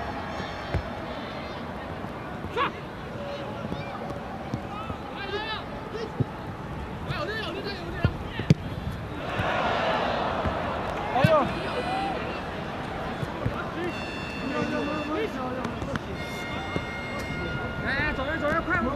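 A crowd in a large open stadium murmurs and swells into a roar.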